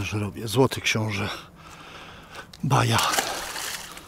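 A fish splashes as it drops into water.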